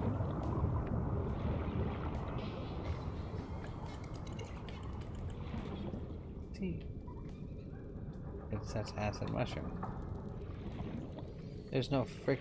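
Water rumbles and bubbles in a low, steady underwater drone.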